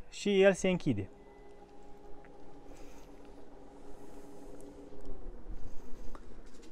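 A car's power tailgate motor hums steadily as the tailgate closes.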